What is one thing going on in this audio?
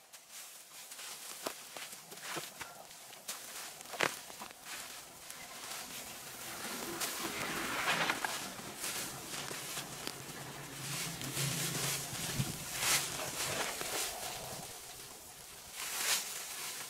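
Dry leaves and brush rustle and crunch.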